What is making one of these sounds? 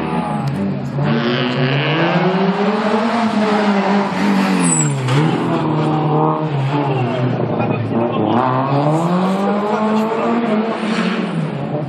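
A car engine revs hard, its pitch rising and falling as it races past.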